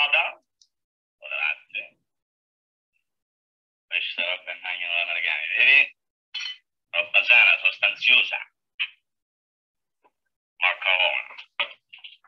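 A man talks to himself with animation.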